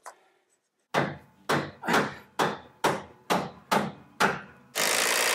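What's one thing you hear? A hammer strikes nails into wood.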